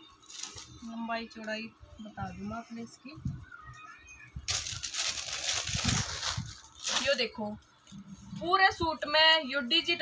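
A woman speaks nearby in a conversational tone.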